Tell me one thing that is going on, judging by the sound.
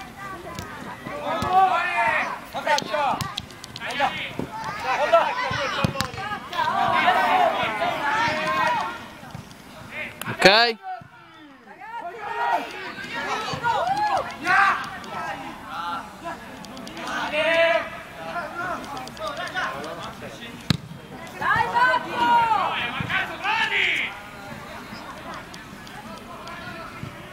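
Young players shout and call out across a football pitch outdoors.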